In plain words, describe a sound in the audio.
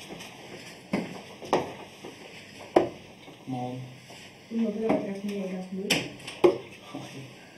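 Darts thud sharply into a dartboard.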